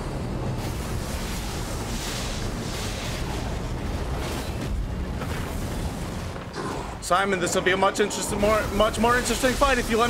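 A burst of magic whooshes and crackles.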